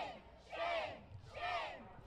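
A crowd of protesters chants loudly in rhythm outdoors.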